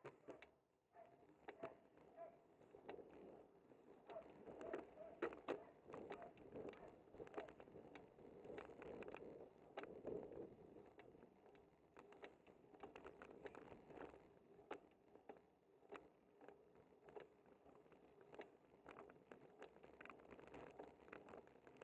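Wind rushes steadily past as a bicycle rolls downhill.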